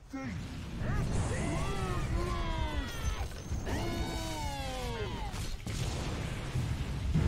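Spell effects and clashing blows of a video game battle play throughout.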